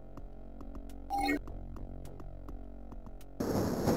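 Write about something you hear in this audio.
A health item is picked up with a short chime.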